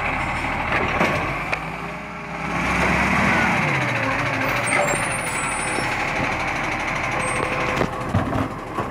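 A garbage truck's metal arm clanks and knocks.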